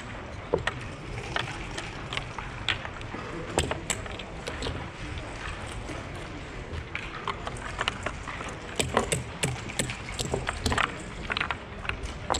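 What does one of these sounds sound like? Backgammon checkers click and clack as they are moved on a wooden board.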